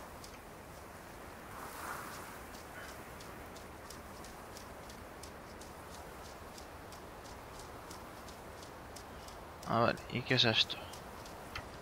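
Footsteps crunch on dirt and leaves.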